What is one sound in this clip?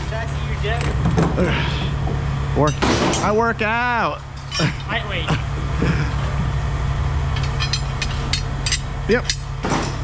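Metal bars clank and scrape against each other.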